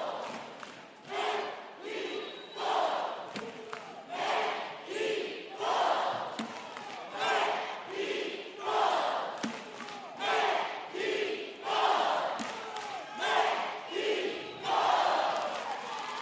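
A team of young cheerleaders chants in loud rhythmic bursts in a large echoing arena.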